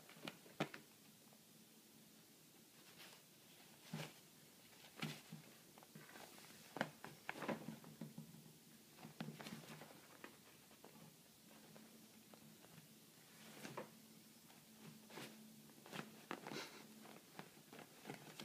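A cat scratches and paws at a soft fleece blanket with quick, scattered scrapes.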